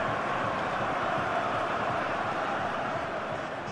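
A football is struck hard with a thud.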